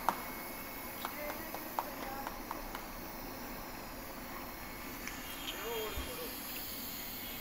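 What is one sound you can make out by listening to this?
A sealing machine hums steadily.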